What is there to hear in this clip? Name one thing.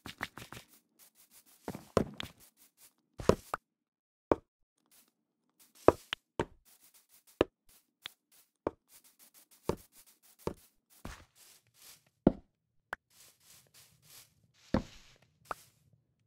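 Footsteps crunch on grass at an even walking pace.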